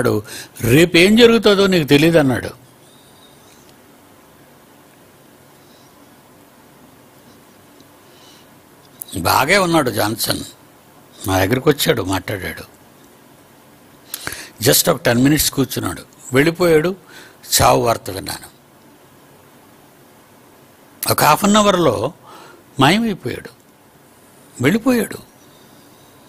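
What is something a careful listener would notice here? An elderly man speaks calmly into a microphone, in bursts with long pauses.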